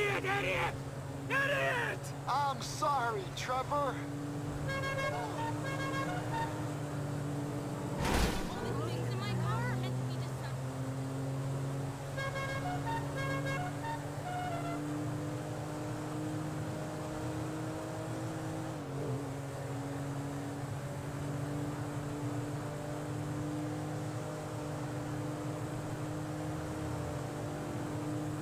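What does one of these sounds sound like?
A car engine hums steadily as the car drives fast along a road.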